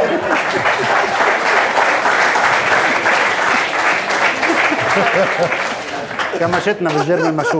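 A studio audience laughs and cheers loudly.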